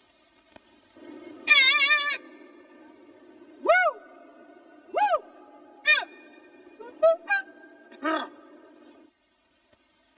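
A man sings loudly in short, sliding bursts.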